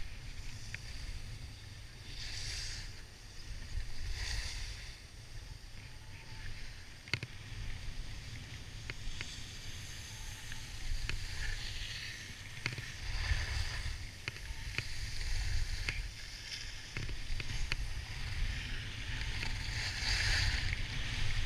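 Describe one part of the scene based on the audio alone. Wind rumbles against a microphone.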